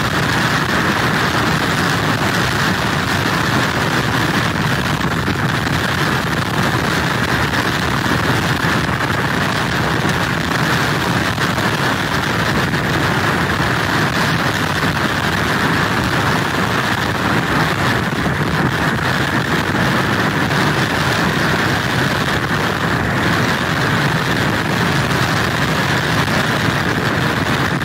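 Heavy surf crashes and roars against wooden pilings.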